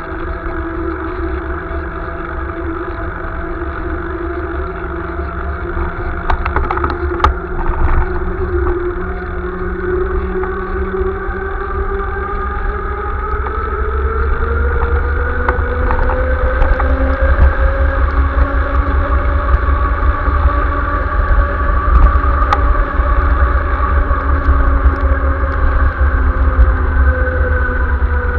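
Bicycle tyres hiss on a wet paved path.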